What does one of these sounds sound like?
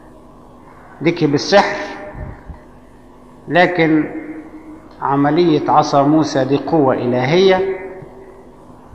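An elderly man speaks slowly and calmly through a microphone.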